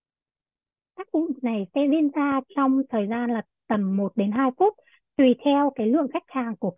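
A young woman speaks calmly over an online call.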